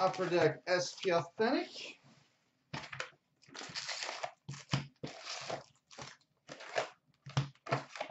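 Hands tear open cardboard card boxes with soft scraping and tapping.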